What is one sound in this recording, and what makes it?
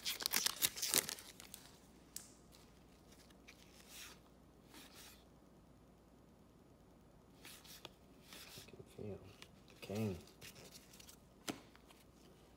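Stiff cards slide and flick against each other.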